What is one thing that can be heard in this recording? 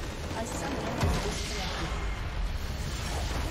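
A huge magical structure explodes with a deep boom.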